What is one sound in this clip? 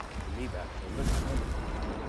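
Leafy plants rustle as someone pushes through them.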